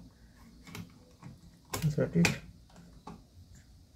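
A hard drive clicks into place in a laptop.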